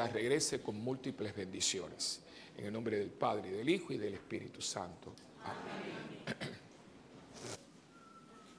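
An elderly man chants through a microphone in a large echoing room.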